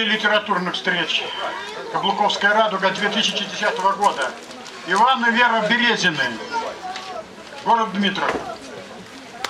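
An elderly man speaks calmly into a microphone, heard over loudspeakers outdoors.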